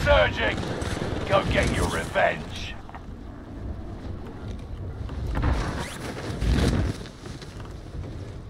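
Wind rushes past loudly during a fall through the air.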